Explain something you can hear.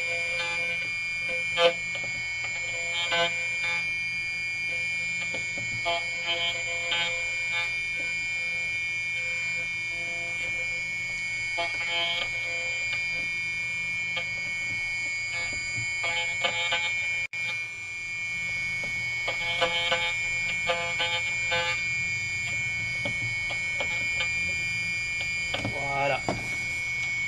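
Metal grinds and scrapes against a cutter in short bursts.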